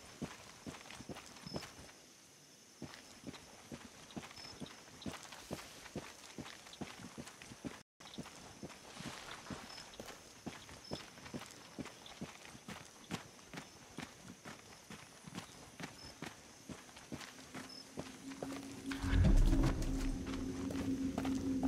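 Footsteps crunch steadily on dirt and stones.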